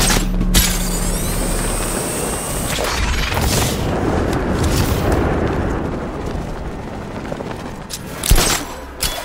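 Wind rushes loudly past during a fast glide through the air.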